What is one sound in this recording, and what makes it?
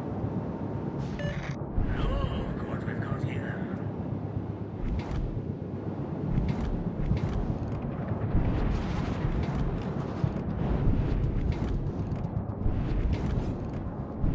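Water rushes and splashes against a moving ship's hull.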